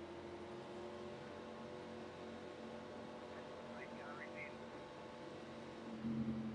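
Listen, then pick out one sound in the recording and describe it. A race car engine drones steadily at low speed.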